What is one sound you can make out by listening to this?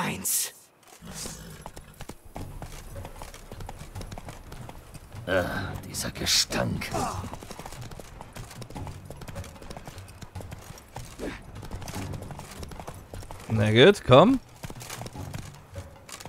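A horse gallops, its hooves thudding on a dirt path.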